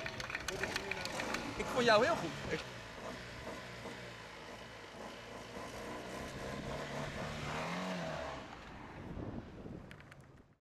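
A small car's engine hums as the car drives slowly closer.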